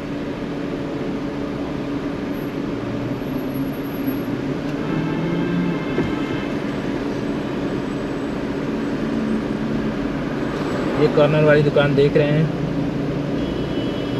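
A car engine idles steadily from inside a stopped car.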